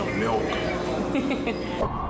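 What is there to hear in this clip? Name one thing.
A man speaks casually nearby.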